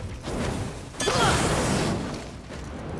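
Flames burst up with a loud roaring whoosh.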